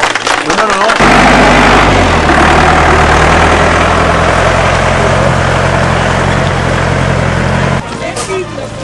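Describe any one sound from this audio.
A tractor engine rumbles loudly and steadily.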